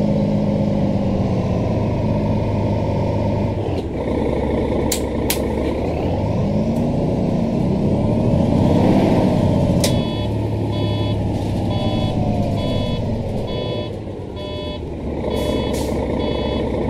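A bus engine rumbles steadily and revs up as the bus pulls away.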